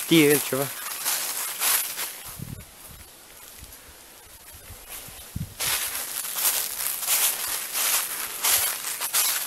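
Footsteps crunch through dry fallen leaves.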